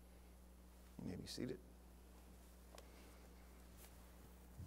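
Footsteps shuffle softly on a carpeted floor.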